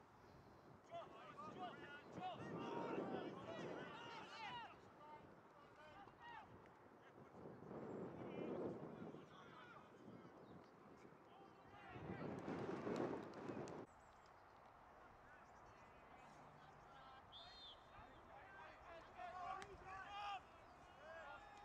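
Young players shout and call to each other at a distance outdoors.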